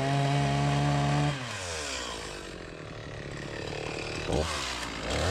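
A chainsaw engine idles, then slowly winds down.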